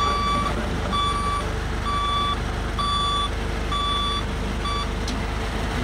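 A truck's reversing alarm beeps steadily.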